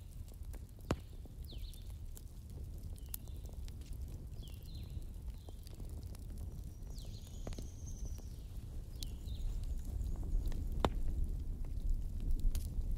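A fire roars low and steady.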